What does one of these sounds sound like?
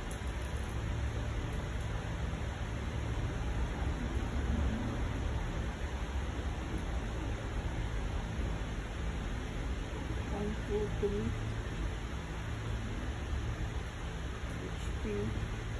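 A printer hums quietly and steadily.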